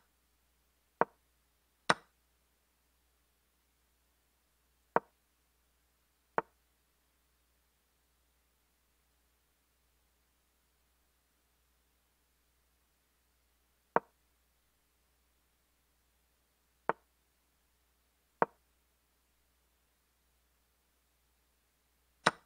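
Chess pieces click sharply as each move is made.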